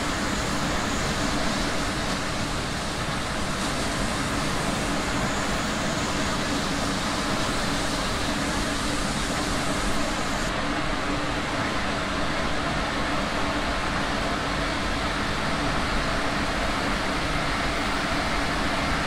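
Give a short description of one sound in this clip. A tram rumbles steadily along the rails.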